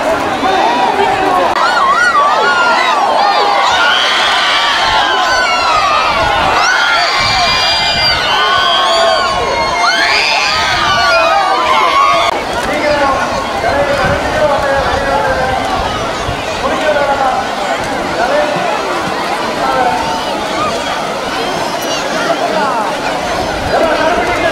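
A large crowd of men and women shouts and cheers loudly outdoors.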